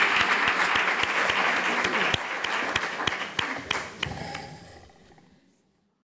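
An audience applauds in a large hall, and the clapping fades out.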